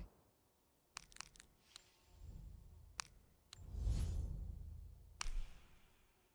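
Short menu clicks and blips sound from a game.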